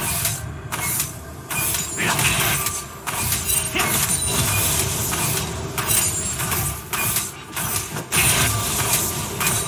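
Game spell effects whoosh and clash in quick bursts.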